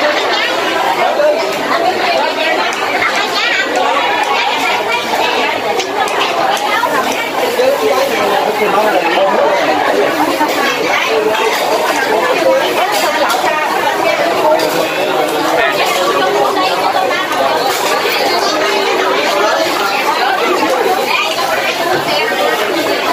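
A crowd of people chatter all around.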